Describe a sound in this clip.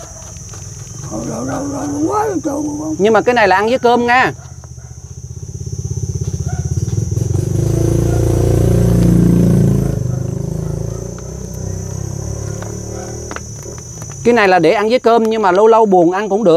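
An elderly man speaks close by.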